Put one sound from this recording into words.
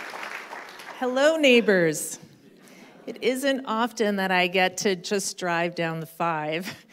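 A woman speaks animatedly through a microphone in a large hall.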